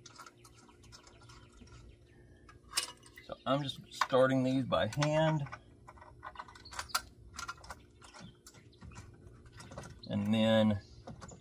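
A metal tool clicks and rattles against a winch.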